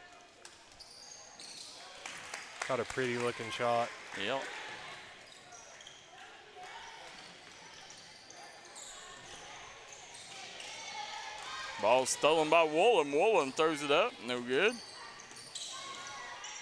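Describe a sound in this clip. Sneakers squeak on a hard gym floor.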